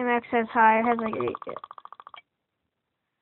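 A quick run of electronic ticks plays as a score counter rolls up.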